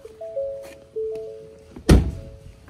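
A car's door-open chime beeps in short, steady tones.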